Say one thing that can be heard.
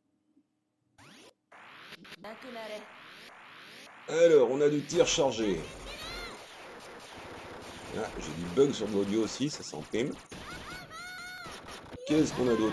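Rapid electronic shots and blasts sound from an arcade shooting game.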